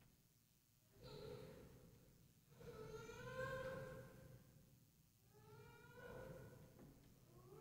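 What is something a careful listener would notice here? An older man chants a prayer aloud in an echoing hall.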